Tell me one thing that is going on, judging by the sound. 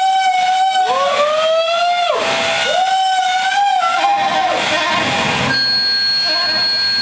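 An electronic instrument gives out steady, humming tones.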